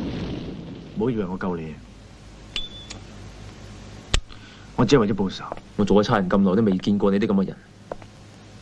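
A young man speaks calmly and quietly up close.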